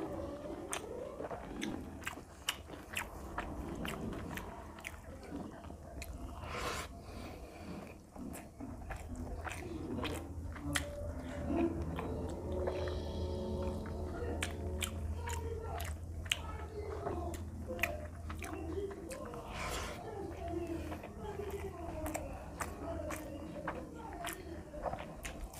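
A man chews and smacks his lips loudly close up.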